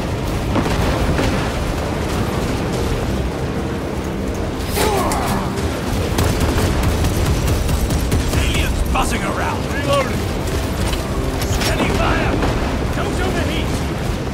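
Gunfire and laser blasts crackle in a battle.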